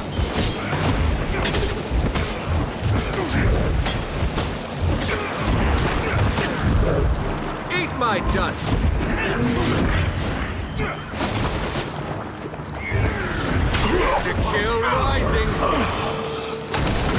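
Magic spells whoosh and burst again and again.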